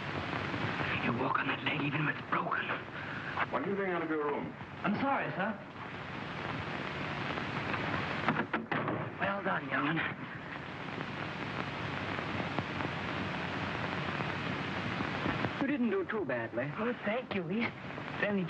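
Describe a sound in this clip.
Young men speak urgently.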